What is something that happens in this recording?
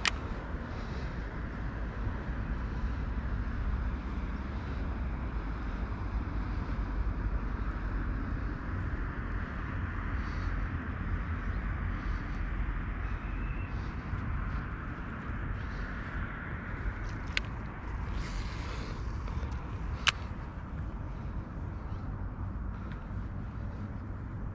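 A fishing reel whirs as a line is wound in.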